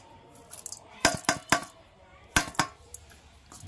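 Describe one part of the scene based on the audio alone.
A metal bowl clinks against another metal bowl.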